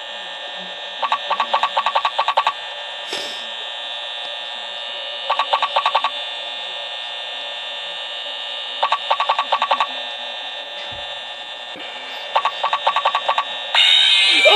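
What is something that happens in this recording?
Rapid bursts of electronic clicking come from a tablet game.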